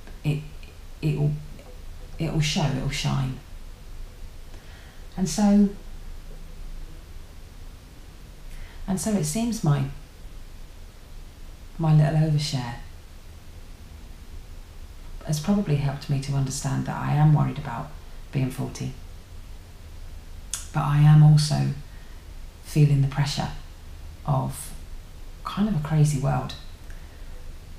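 A young woman talks calmly and close by, in short bursts with pauses.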